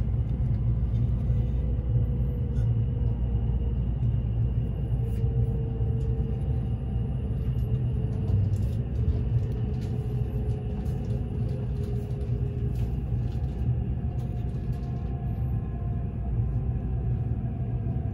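Wheels click over rail joints.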